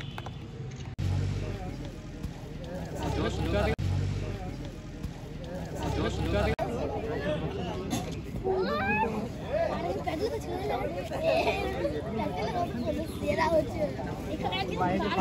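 A crowd of young men talk and shout nearby outdoors.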